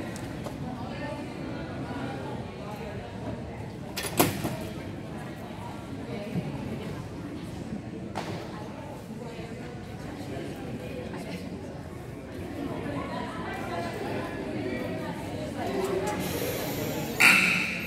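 Young women chatter together in a large echoing gym.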